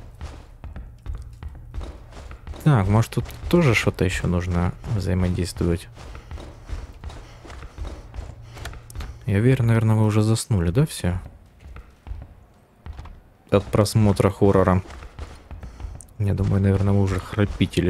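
Footsteps thud on creaky wooden floorboards.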